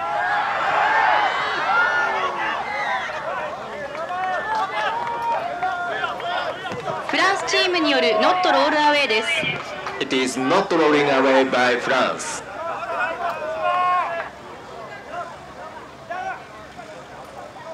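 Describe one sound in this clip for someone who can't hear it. A large outdoor crowd of spectators cheers and chatters.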